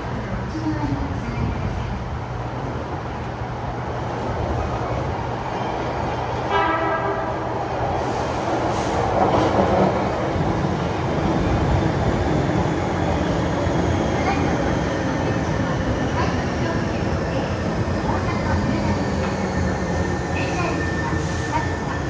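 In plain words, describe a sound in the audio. A train rumbles into an echoing underground station, growing louder.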